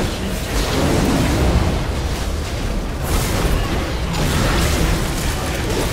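Game spells blast and crackle in a busy fight.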